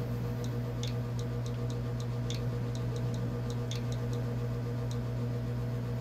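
Short, soft electronic clicks tick again and again.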